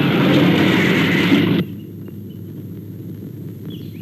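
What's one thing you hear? A jeep drives along a dirt track.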